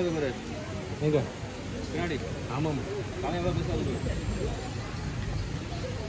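Water trickles softly over rocks.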